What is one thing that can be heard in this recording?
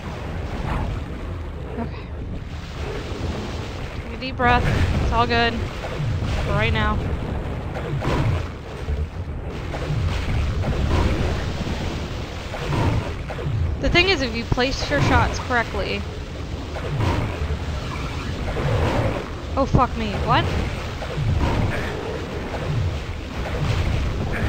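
A young woman talks casually into a microphone, close by.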